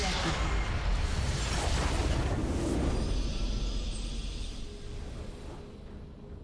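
A triumphant game fanfare plays and fades.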